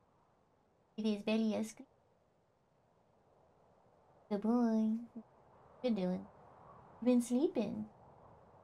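A young woman speaks in short, lively bursts into a microphone.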